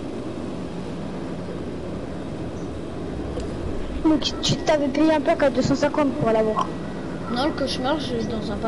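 Flames roar low and steadily from a burning aircraft.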